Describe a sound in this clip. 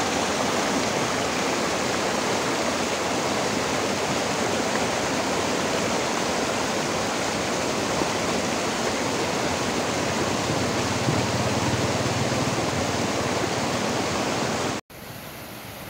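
Water rushes loudly over rocks in a small waterfall.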